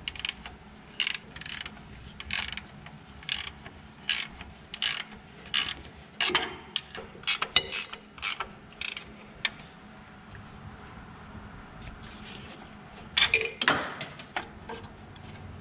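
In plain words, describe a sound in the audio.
A ratchet wrench clicks in short bursts as a bolt is turned.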